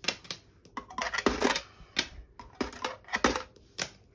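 Coins clink as they are picked up from a table.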